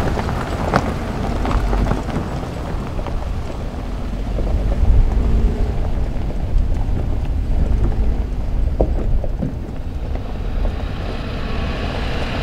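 Tyres crunch over loose gravel and rocks.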